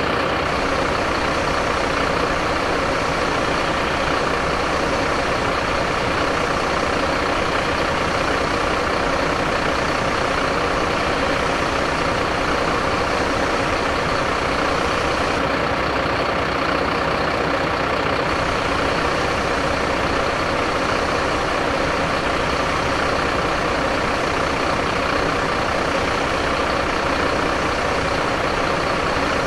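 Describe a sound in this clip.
A diesel fire engine idles with its pump running.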